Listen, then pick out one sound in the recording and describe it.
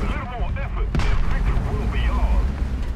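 A tank cannon fires with a loud, sharp boom.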